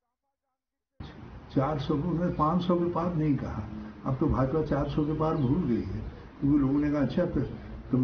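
An elderly man speaks calmly into microphones, close by.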